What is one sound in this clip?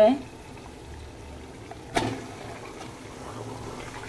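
Wet meat plops heavily into a metal pot.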